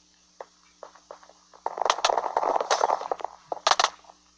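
Quick thuds of blocks being punched sound in a video game.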